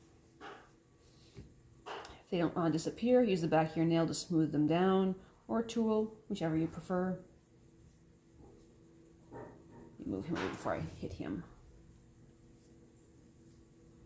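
Hands press and rub soft clay with quiet dull pats.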